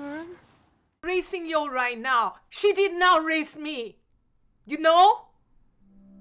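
A middle-aged woman shouts angrily.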